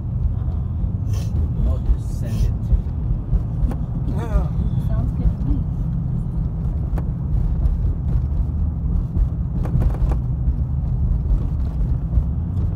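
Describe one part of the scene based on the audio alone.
A car engine hums steadily with a low road rumble from inside a moving vehicle.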